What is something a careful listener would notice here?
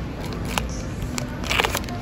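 A packet of rice crinkles in a hand.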